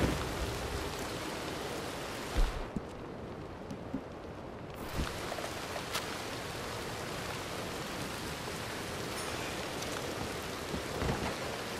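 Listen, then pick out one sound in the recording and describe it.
A fire crackles and burns.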